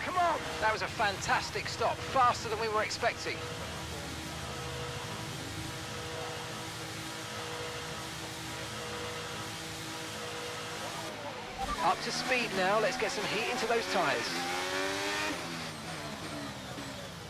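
A racing car engine hums steadily at low speed.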